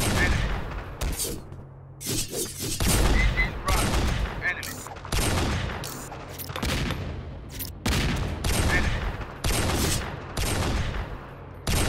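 Guns fire in loud, repeated bursts with booming echoes.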